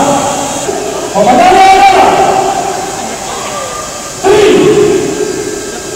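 A large crowd murmurs and chatters in a big echoing hall.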